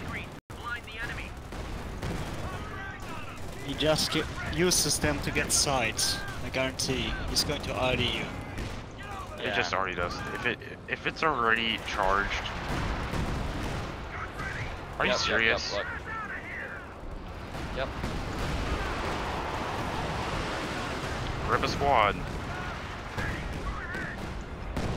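Gunfire crackles and pops in a battle.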